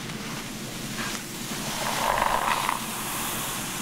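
A brush scratches and swishes through wet hair, close by.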